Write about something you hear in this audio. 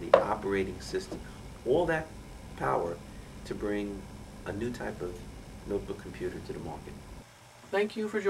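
A middle-aged man talks with animation.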